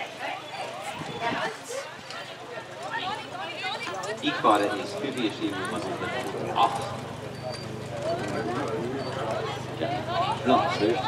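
A horse trots on grass, pulling a carriage.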